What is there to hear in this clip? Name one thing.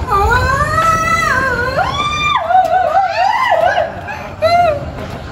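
A woman shrieks and wails in a high, wavering voice nearby.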